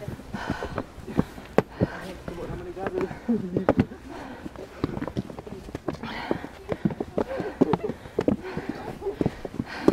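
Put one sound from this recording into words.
Puffy jacket fabric rustles close by.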